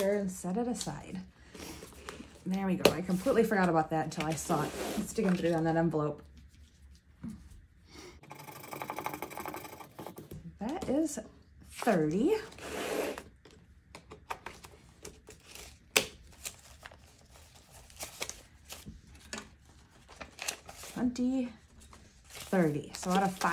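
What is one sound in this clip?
Paper banknotes rustle and crinkle as they are handled.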